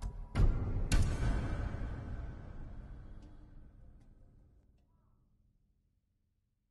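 A game menu selection sounds with a sharp boom that slowly fades away.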